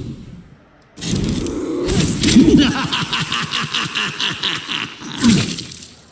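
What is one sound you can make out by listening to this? A fiery blast roars and crackles.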